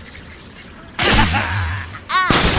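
A bird launches from a slingshot with a whoosh.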